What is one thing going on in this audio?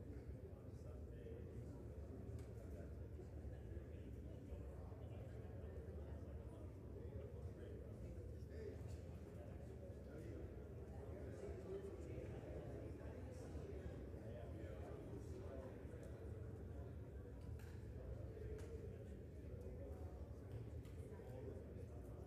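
A large echoing hall murmurs with many distant voices.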